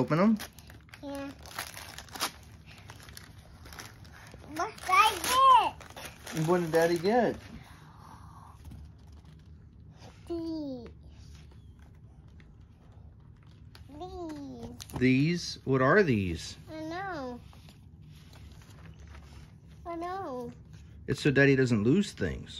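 A young girl talks excitedly close by.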